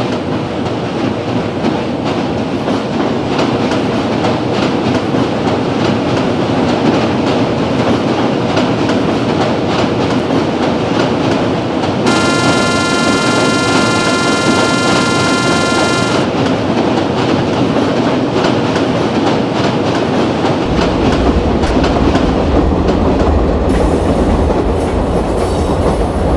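A train rumbles steadily along the tracks, wheels clattering.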